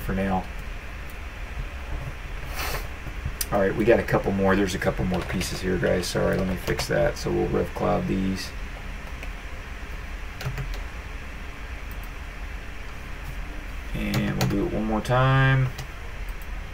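A man talks calmly and close to a microphone.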